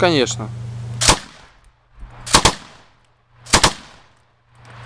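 Rifle shots ring out loudly outdoors, one at a time, each followed by a short echo.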